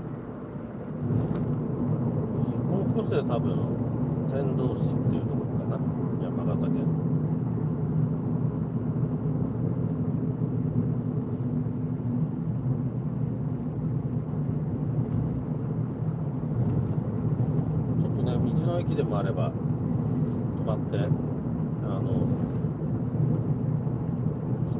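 Tyres roll steadily over a paved road.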